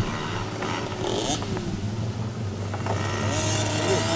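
A motorbike engine revs up and down.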